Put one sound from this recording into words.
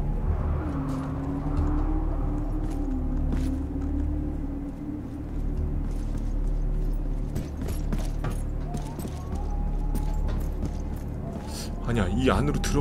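Footsteps thud across a hollow metal roof.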